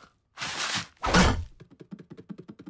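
A heavy thud sounds as a cartoon man falls face down.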